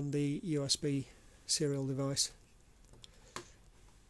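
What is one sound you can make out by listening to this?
A small plastic device is set down on a wooden table with a light knock.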